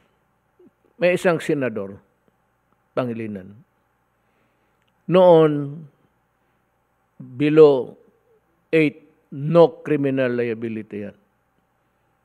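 An older man speaks emphatically into a microphone, in short bursts with pauses.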